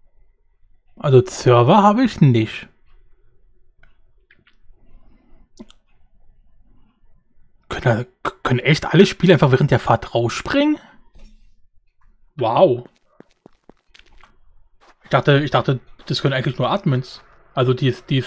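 A man talks animatedly and close to a microphone, in bursts with pauses.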